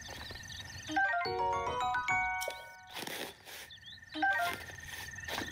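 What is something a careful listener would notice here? A bright chiming jingle plays.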